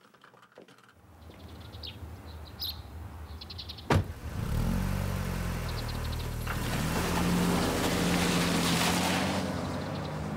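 A car engine idles and then revs as the car pulls away.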